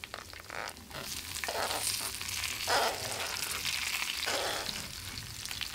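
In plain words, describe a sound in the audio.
Chunks of eggplant slide and thud into a sizzling pan.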